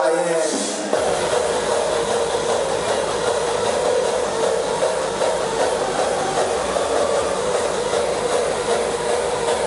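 A heavy bass beat kicks in and thumps steadily.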